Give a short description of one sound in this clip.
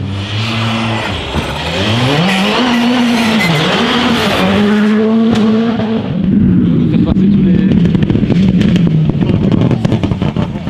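A rally car engine revs up and down through gear changes.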